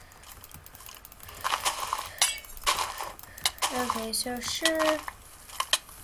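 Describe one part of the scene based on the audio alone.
A sword strikes a creature with quick, dull hits.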